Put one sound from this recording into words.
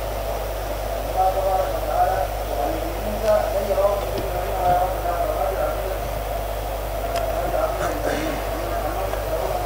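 A man speaks calmly into a microphone in a slow, chanting voice.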